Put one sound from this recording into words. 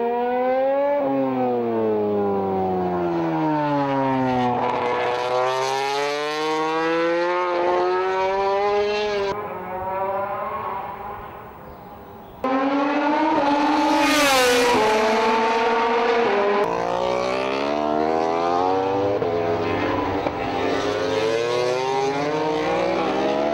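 A racing motorcycle engine screams close by, its pitch rising and falling as it speeds up and shifts gears.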